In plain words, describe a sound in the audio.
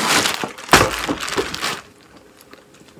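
Cloth rustles and brushes close by.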